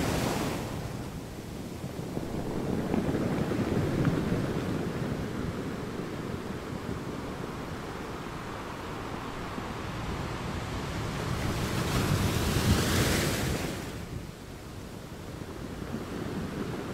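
Surf washes and fizzes over the rocks.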